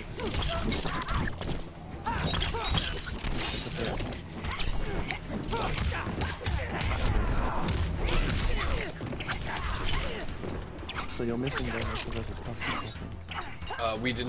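Punches and kicks land with sharp thuds and smacks.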